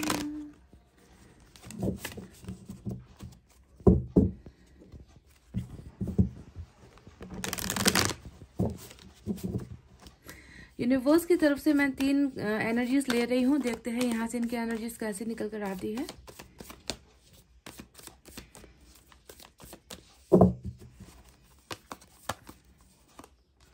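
Playing cards are shuffled and riffled.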